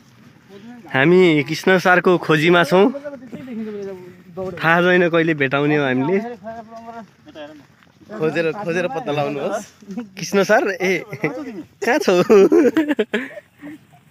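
Men talk with animation close by outdoors.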